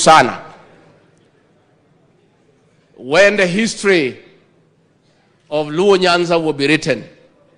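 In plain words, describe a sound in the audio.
A middle-aged man speaks forcefully into a microphone, in short bursts with pauses.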